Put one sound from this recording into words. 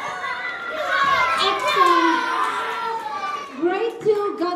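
A young girl cheers excitedly.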